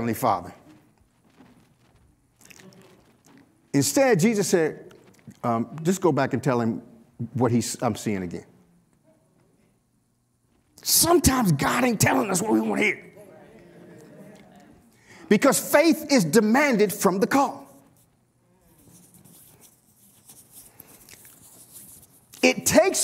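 A man speaks with animation into a microphone, with pauses between phrases.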